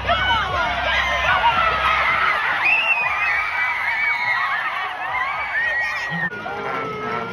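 A large crowd cheers and roars outdoors in stadium stands.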